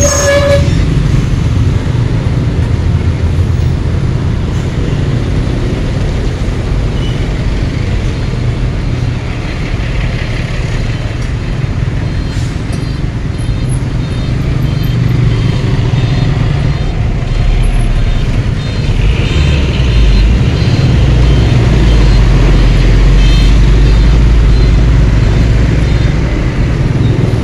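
A motorcycle engine hums steadily up close.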